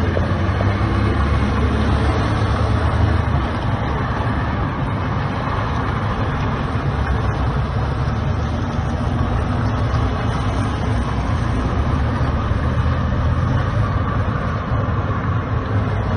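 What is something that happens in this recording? A large fire roars and crackles outdoors.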